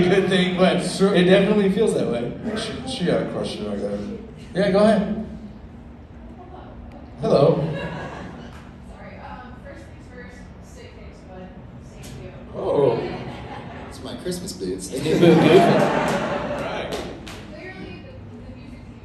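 A man speaks with animation through loudspeakers in a large echoing hall.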